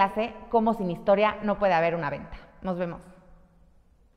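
A young woman speaks warmly and clearly into a close microphone.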